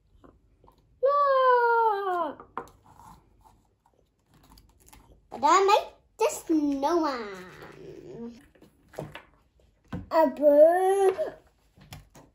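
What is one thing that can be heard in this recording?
A young boy talks excitedly close by.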